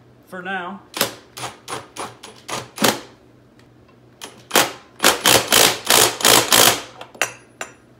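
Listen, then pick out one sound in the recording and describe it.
A wheel hub clicks as it is turned by hand.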